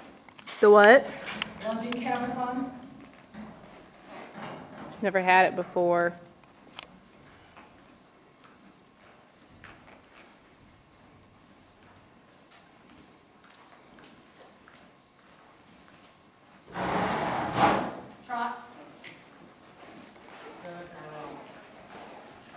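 A woman talks calmly nearby in a large echoing hall.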